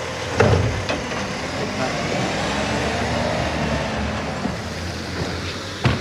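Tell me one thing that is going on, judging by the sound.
A hydraulic arm whines as it lifts a bin.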